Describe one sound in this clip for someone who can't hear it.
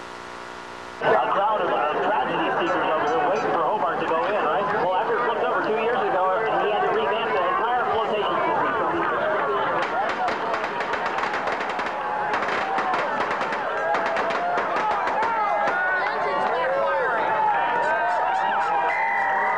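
A crowd cheers and chatters loudly outdoors.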